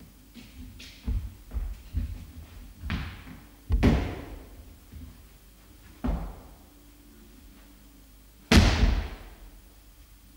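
A person stamps heavily on a wooden floor.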